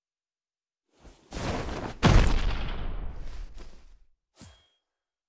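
A loud whoosh of rushing air sweeps past and fades.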